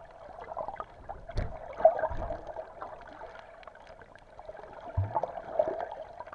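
A swimmer's limbs splash and churn the water nearby.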